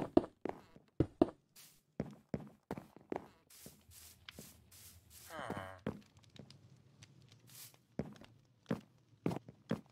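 Footsteps tap quickly on wooden boards and stone.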